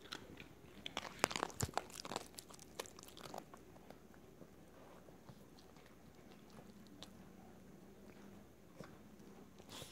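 A small dog chews and licks noisily close by.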